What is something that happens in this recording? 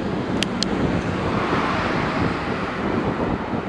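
A car passes close by and fades.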